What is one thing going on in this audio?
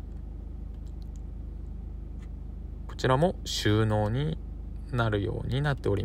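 An armrest lid clicks open.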